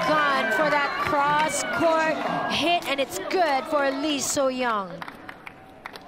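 Young women shout and cheer excitedly close by.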